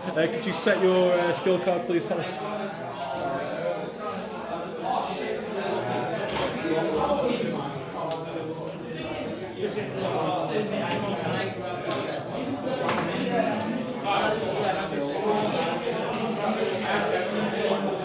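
Cards riffle and click as they are shuffled.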